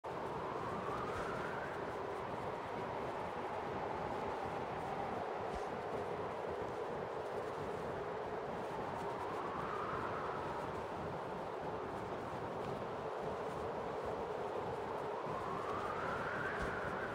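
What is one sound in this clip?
Wind rushes steadily, rising and falling in a slow whoosh.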